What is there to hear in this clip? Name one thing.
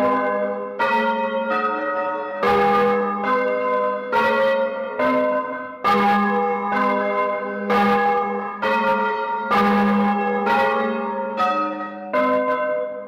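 Large church bells ring loudly overhead in a rapid, overlapping peal, each stroke ringing on.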